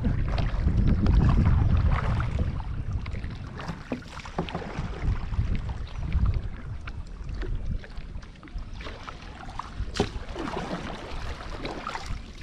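Water laps and splashes against a kayak.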